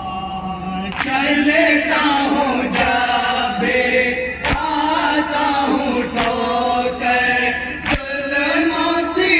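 A large crowd of men chants along loudly.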